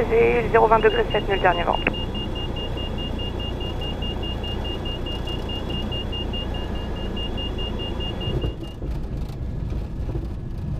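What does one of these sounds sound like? A small plane's propeller engine drones steadily.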